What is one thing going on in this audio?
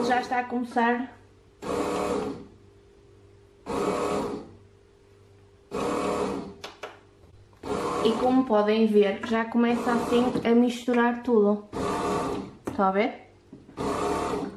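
A bread machine motor hums steadily as it kneads dough.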